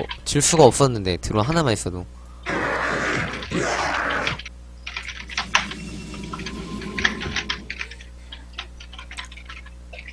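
Short zaps and bursts of fire crackle from a battle in a video game.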